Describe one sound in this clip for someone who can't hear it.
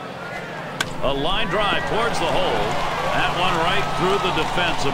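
A large crowd cheers and whistles loudly.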